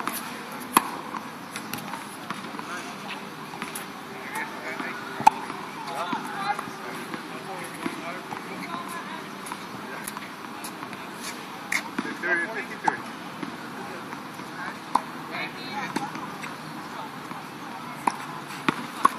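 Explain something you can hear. Tennis balls are struck with rackets, making sharp pops.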